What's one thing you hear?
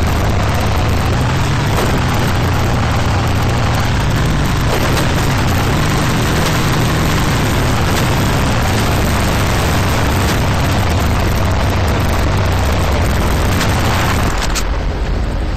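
An off-road vehicle's engine drones as it drives.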